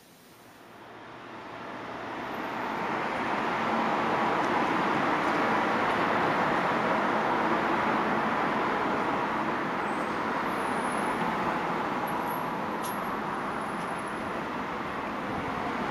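A car drives along a road with a steady rush of tyre and engine noise.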